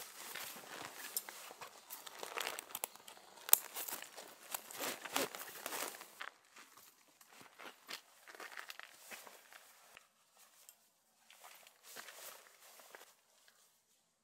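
Nylon fabric rustles close by.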